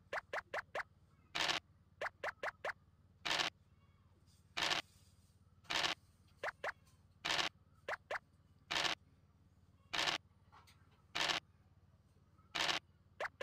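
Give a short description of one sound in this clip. Game pieces tick quickly as they hop along the board.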